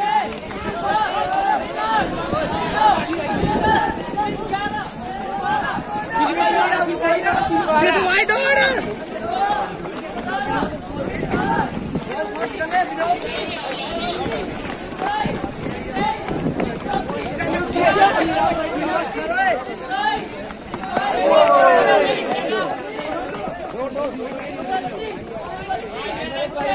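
A crowd of young men cheer and shout outdoors.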